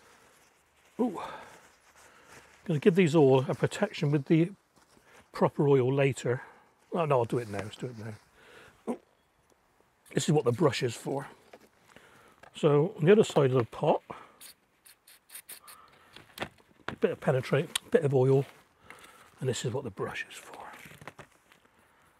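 An older man talks calmly and close by.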